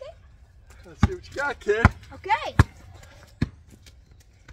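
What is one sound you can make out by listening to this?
A basketball bounces on pavement.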